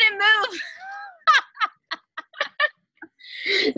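Young women laugh loudly over an online call.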